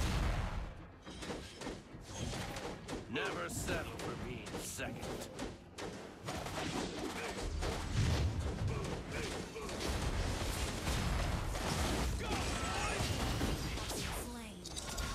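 Game spell effects whoosh and blast during a fight.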